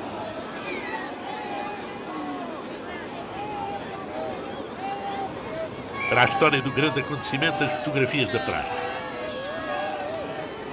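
A crowd of men chatter and murmur outdoors.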